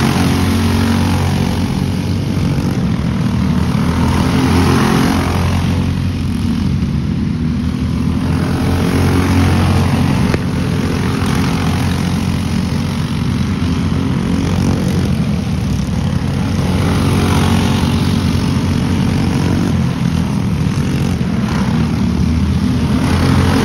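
Kart engines drone loudly, rising and falling as karts race past outdoors.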